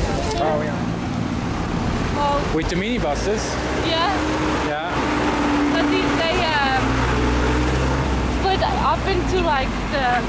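Traffic rumbles past on a street.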